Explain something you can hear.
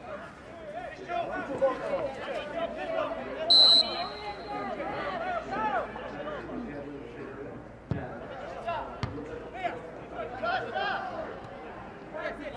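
Young men shout and call out to each other across an open field.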